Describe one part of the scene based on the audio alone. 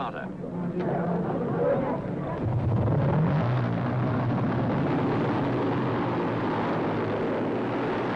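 Motorcycle engines rev loudly at a start line.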